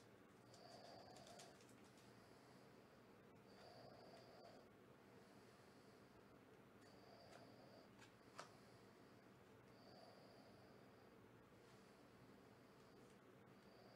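Stiff cards slide and rub against each other.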